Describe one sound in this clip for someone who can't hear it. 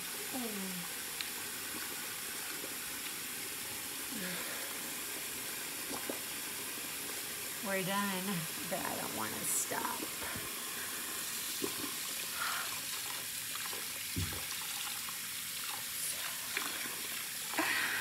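Tap water runs steadily into a sink.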